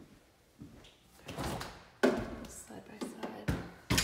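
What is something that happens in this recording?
A refrigerator door is pulled open.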